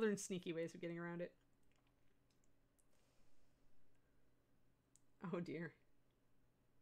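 An older woman speaks calmly into a microphone, in short bursts.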